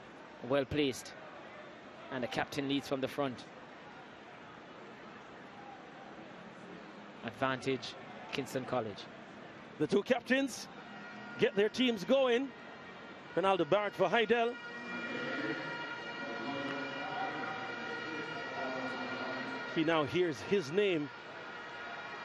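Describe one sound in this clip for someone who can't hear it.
A crowd murmurs in a large open stadium.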